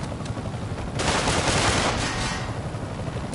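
Gunshots ring out and bullets ricochet off metal.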